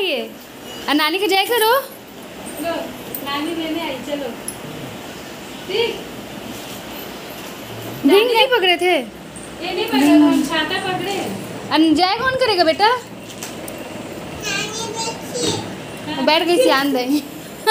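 A small child babbles.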